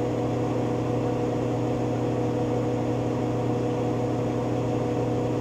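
Water swishes and sprays inside a washing machine drum.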